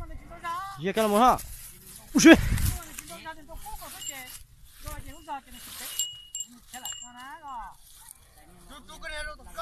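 Cattle hooves trample dry stubble.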